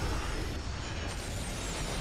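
A sword swings through the air with a whoosh.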